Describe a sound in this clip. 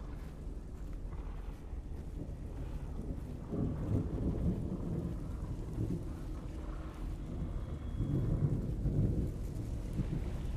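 A person rustles through tall grass.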